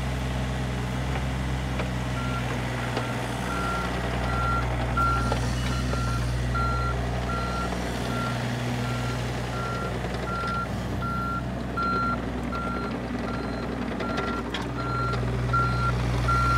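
Excavator tracks clank and squeak over the ground.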